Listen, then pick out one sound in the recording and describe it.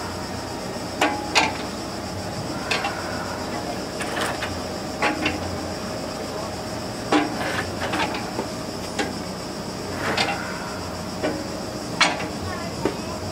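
Valves on an old stationary engine click and knock irregularly.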